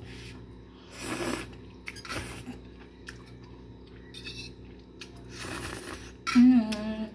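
A young woman slurps noodles loudly and close by.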